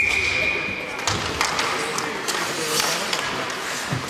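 Hockey sticks clack together at a faceoff on ice.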